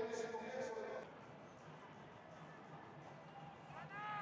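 A stadium crowd murmurs in a large open space.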